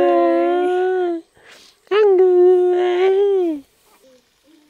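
A baby squeals and coos loudly close by.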